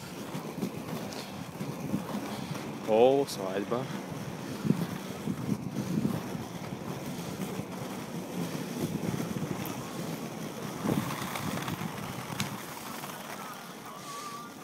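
Inline skate wheels roll and rumble over rough asphalt.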